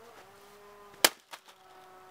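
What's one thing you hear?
A hammer smashes down on a laptop's plastic case.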